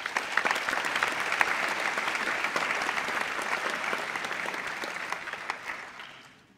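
A crowd applauds loudly in a large room and slowly fades.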